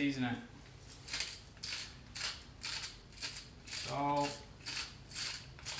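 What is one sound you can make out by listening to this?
A pepper mill grinds in short, regular bursts.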